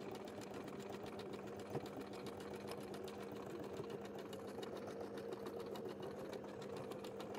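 A sewing machine hums and clatters steadily as it stitches fabric.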